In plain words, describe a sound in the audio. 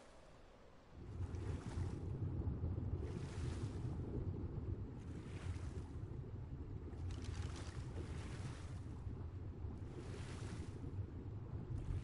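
Water rumbles, muffled, around a swimmer underwater.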